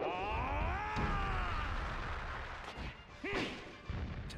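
Game fighters' punches and blasts whoosh and thump in a fighting game.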